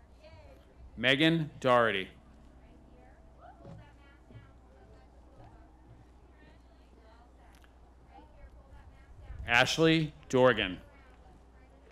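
A man reads out over a loudspeaker in a large open space, with an echo.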